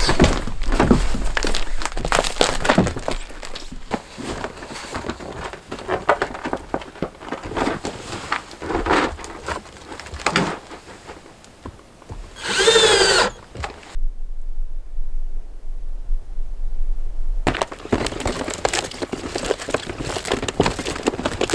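Plastic sheeting crinkles and rustles close by.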